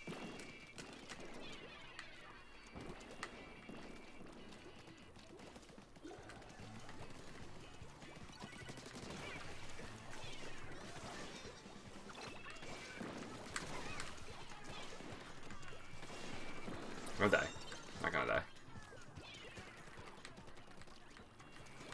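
Game sound effects of splattering paint and shooting play throughout.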